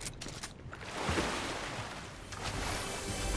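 Water splashes loudly as a figure jumps into a pool.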